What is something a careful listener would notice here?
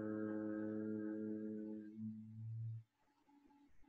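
A man hums a long, deep, steady tone close by, then stops.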